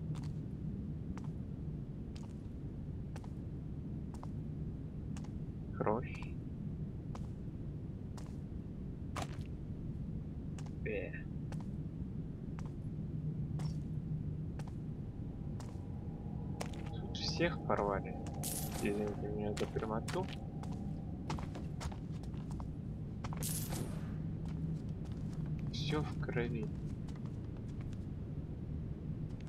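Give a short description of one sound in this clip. Footsteps tap on a hard tiled floor at a steady walking pace.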